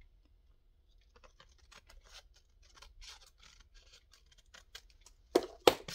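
Scissors snip through thin cardboard.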